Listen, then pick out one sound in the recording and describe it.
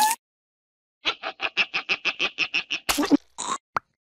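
A cartoon larva laughs loudly.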